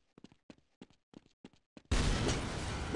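Footsteps thud on soft ground.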